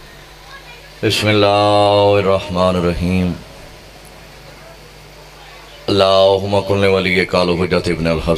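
A man sings a mournful chant loudly through a microphone and loudspeakers.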